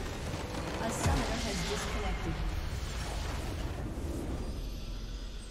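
A huge magical blast booms and crackles.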